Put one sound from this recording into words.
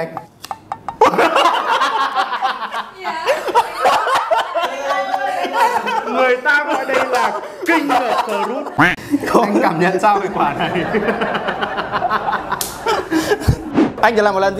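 Two young men laugh loudly and heartily, close to microphones.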